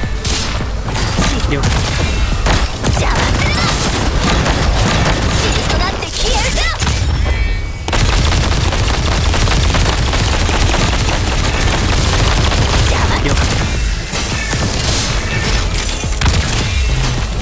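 Game weapons slash and clash with sharp electric zaps.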